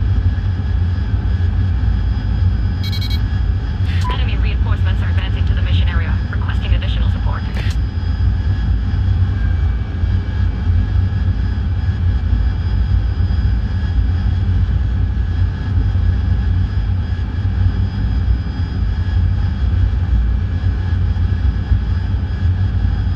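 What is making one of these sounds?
A jet engine roars steadily inside the cockpit.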